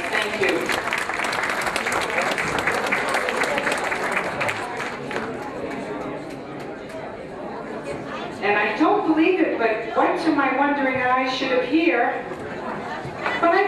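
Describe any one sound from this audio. A woman sings into a microphone through loudspeakers.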